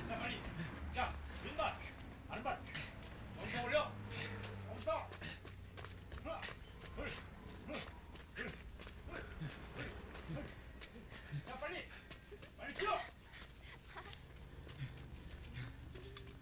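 Running footsteps slap on pavement.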